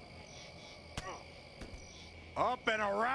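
Punches land with dull thuds.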